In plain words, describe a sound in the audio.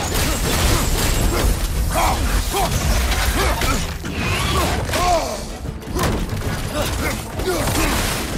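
A large beast roars and snarls.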